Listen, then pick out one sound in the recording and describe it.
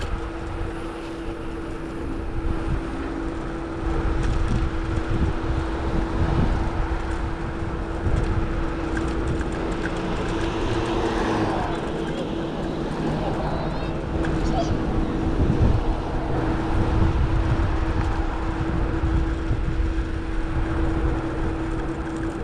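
Wind rumbles steadily across the microphone of a moving bicycle.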